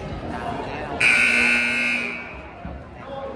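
A referee's whistle blows loudly.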